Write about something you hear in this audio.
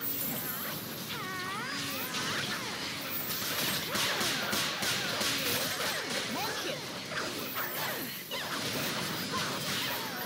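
Magic spells burst and crackle during a fierce battle.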